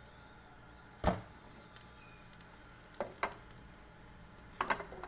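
A metal pan scrapes and knocks on a stove.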